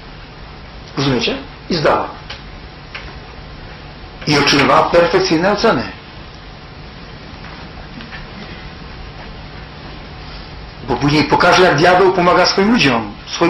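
A man speaks calmly through a microphone with pauses, in a reverberant room.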